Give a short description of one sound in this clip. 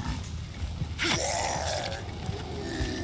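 A blade strikes a burning creature with a heavy slash.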